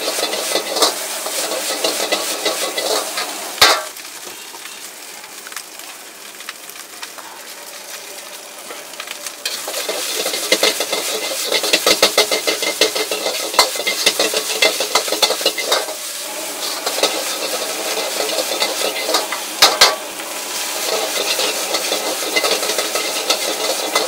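Food sizzles and crackles in a hot wok.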